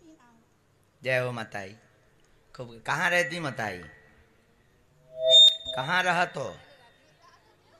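A woman sings into a microphone through loudspeakers, in short phrases.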